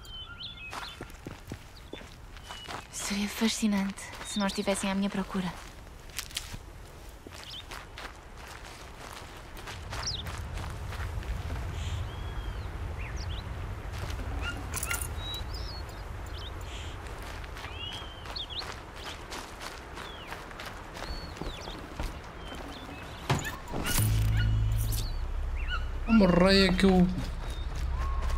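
Footsteps rustle through dense plants.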